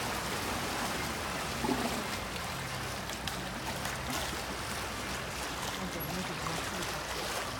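Choppy water sloshes and laps against a pool wall.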